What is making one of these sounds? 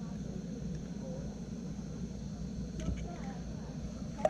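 An egg cracks against the rim of a metal pot.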